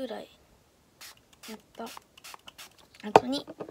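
A spray bottle hisses in quick bursts.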